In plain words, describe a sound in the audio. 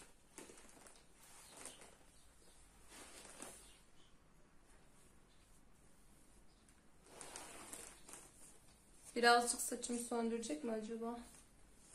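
Hands brush and rustle through hair.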